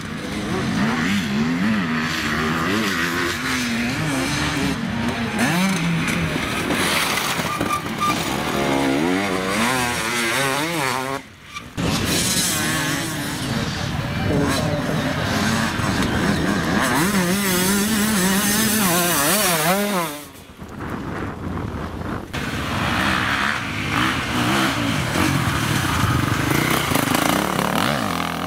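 Dirt bike engines rev loudly and roar past close by, rising and falling in pitch.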